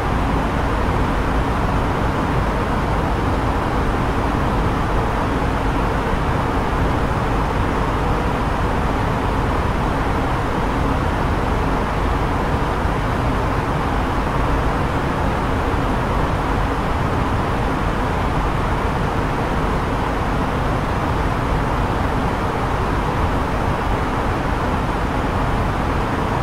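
A steady roar of jet engines and rushing air fills an airliner cockpit in cruise.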